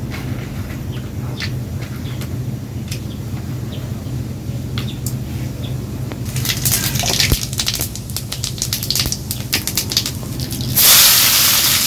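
Hot oil sizzles and crackles in a pan.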